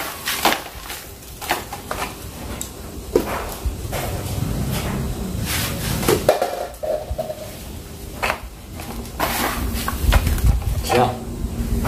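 Loose gravel crunches and rattles as hands press it down.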